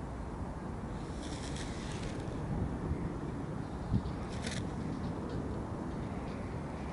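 A kite whooshes and flutters close overhead.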